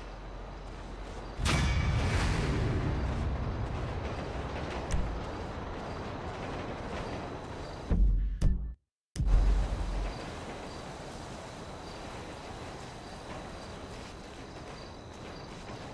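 Footsteps run across gravel.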